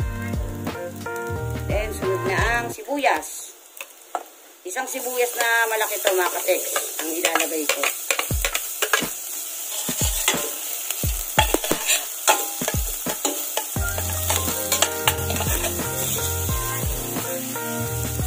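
A metal spatula scrapes and knocks against a pot.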